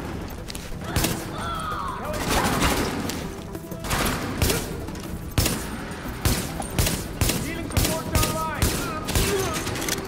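Gunshots crack repeatedly in a burst of rifle fire.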